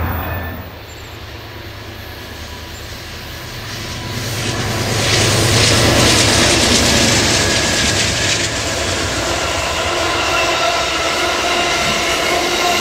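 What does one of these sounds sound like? A diesel train engine rumbles closer and roars past.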